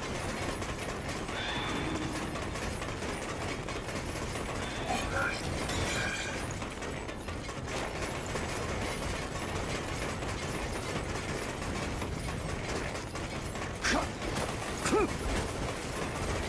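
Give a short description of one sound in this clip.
Weapons slash and clash in quick bursts.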